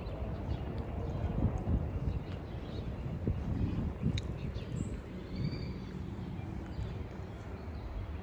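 Wind blows outdoors, rumbling low and gusting.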